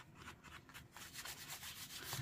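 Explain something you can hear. Hands rub and smooth across a sheet of paper.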